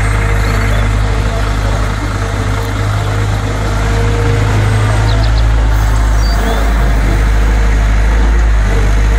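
An excavator's diesel engine rumbles steadily close by.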